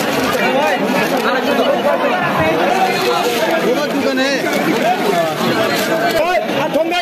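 A crowd of men and women talk and call out all around, close by.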